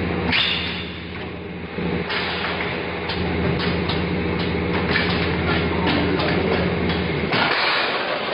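A packaging machine clicks and clacks in a regular rhythm.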